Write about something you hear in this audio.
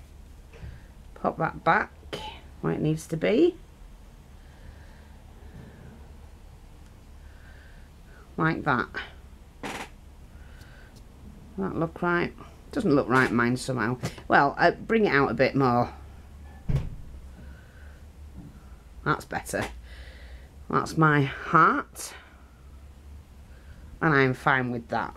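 A marker pen taps dots onto paper.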